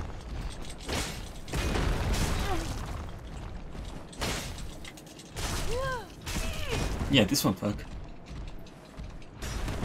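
Armour clanks as a warrior rolls across the ground.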